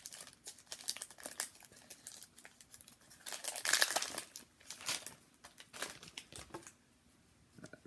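Foil card wrappers crinkle and tear close by.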